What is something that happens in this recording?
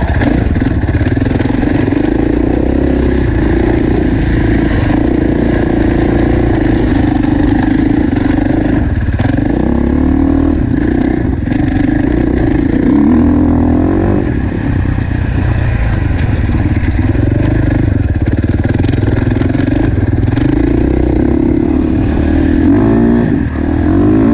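A dirt bike engine revs loudly up close, rising and falling as it shifts gears.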